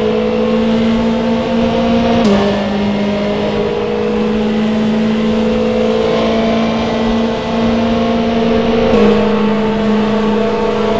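A racing car engine roars at high, steady revs.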